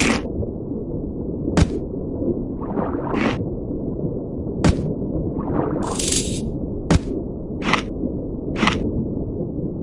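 A shark bites with short, sharp snapping sounds now and then.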